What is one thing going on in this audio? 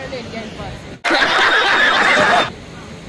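Men laugh loudly.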